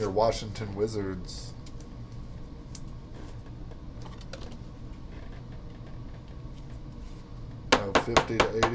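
A plastic card case clicks and rustles in handling.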